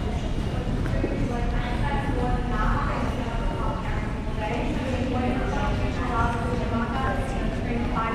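Men and women talk faintly nearby in an echoing hall.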